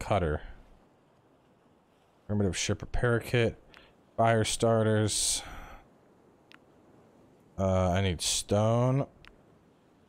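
A man talks casually and close to a microphone, in short bursts.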